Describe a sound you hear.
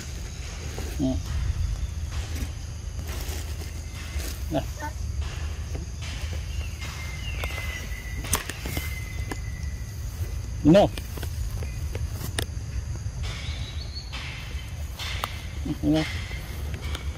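Young monkeys give short high squeaks close by.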